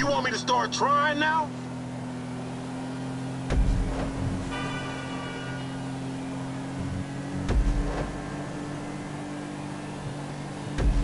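Car tyres roll over the road.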